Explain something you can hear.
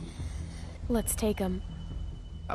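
A young girl speaks calmly.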